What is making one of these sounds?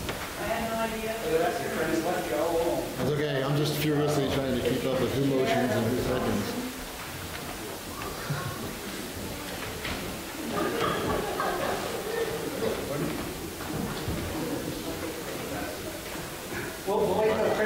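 A man speaks through a microphone in a large echoing hall.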